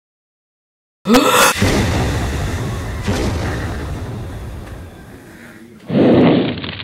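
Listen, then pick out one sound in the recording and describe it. A creature breathes out a roaring blast of fire.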